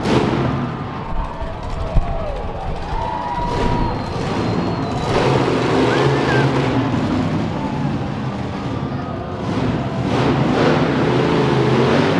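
A crowd cheers in a large echoing arena.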